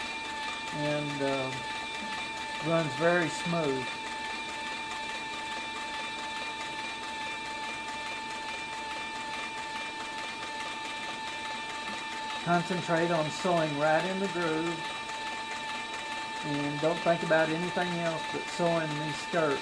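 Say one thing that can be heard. A sewing machine hums steadily.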